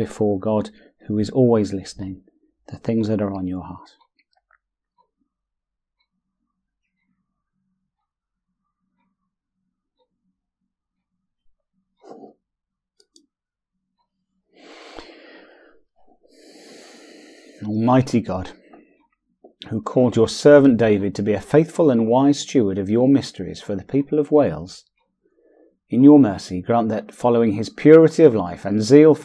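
A middle-aged man speaks calmly and closely into a microphone, pausing now and then.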